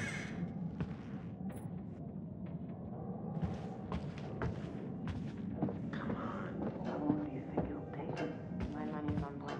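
Footsteps walk slowly across a wooden floor.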